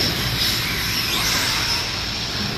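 A small electric motor whines as a model car speeds past in a large echoing hall.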